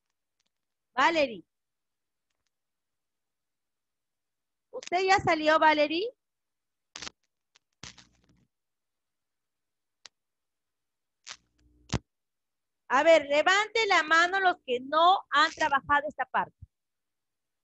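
A woman speaks over an online call, through a headset microphone.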